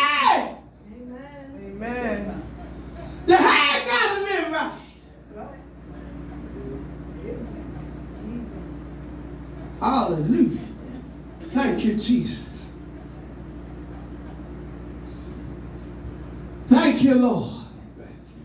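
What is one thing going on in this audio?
An elderly woman sings loudly through a microphone and loudspeakers in an echoing room.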